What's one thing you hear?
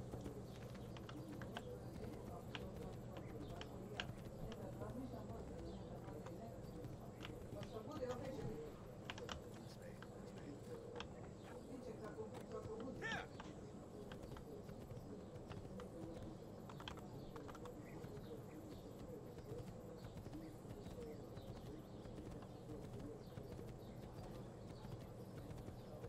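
Horse hooves clop rapidly in a steady gallop.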